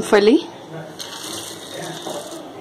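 Peanuts pour and patter into a metal pan.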